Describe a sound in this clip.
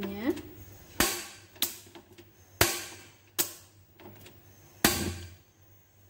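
A gas stove igniter clicks several times.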